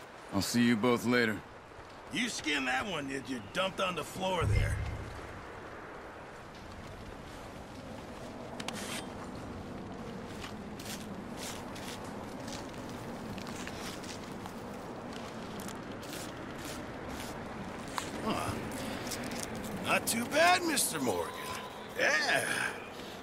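A man speaks calmly, heard up close.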